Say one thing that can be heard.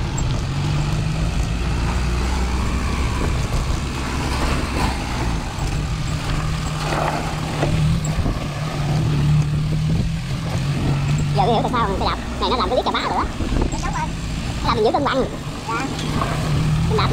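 A small truck's engine rumbles nearby.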